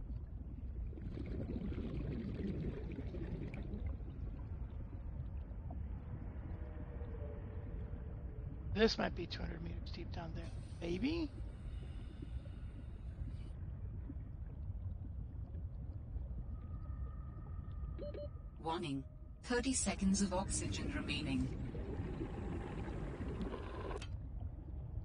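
Bubbles gurgle and fizz underwater.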